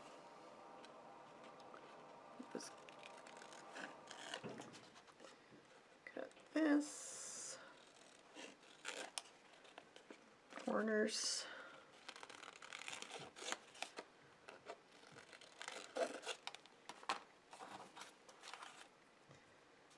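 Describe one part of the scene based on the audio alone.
Paper rustles as it is turned and handled.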